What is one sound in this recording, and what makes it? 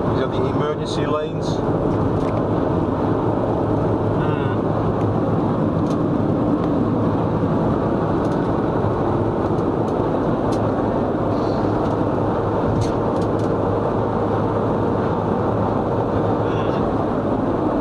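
Wind rushes past a car window.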